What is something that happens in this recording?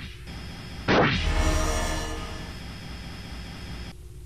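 An explosion bursts loudly and rumbles away.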